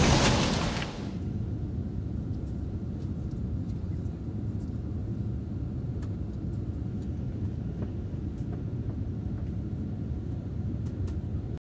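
A jet engine roars with a steady low rumble.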